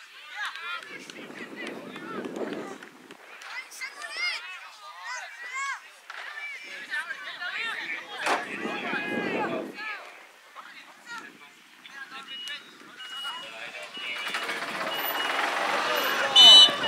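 Young players shout across an open field in the distance.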